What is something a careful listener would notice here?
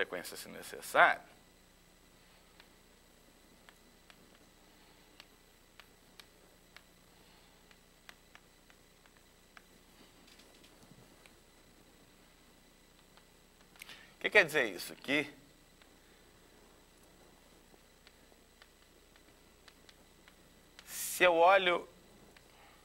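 A man speaks briefly in short bursts, nearby in a room.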